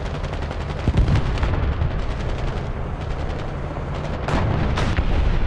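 A tank cannon fires with a loud, sharp boom.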